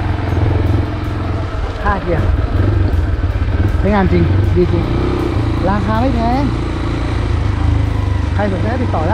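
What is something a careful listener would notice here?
A motorcycle engine runs with a steady low rumble close by.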